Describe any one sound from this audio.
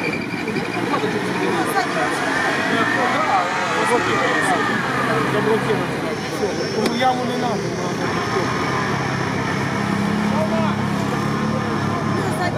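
Spectators chatter nearby outdoors.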